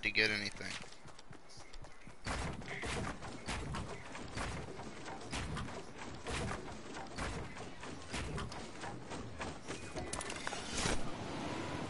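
Building pieces click and thud into place in a video game.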